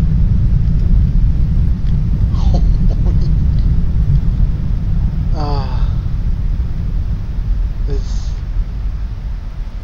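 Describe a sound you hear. Wind rushes steadily with a low roar.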